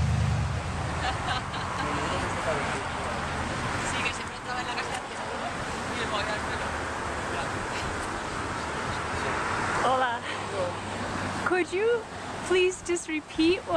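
A man talks nearby outdoors, casually.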